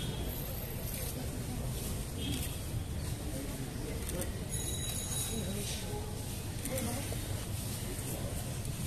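A crowd murmurs quietly in the distance outdoors.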